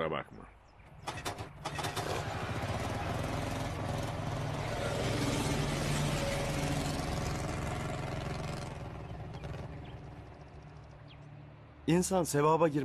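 A motorcycle engine starts and revs loudly.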